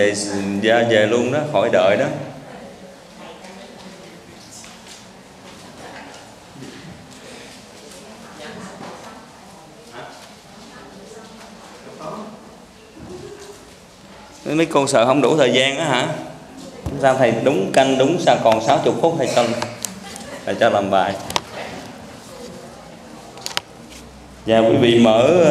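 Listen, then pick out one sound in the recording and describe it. A man speaks calmly into a microphone in a reverberant room.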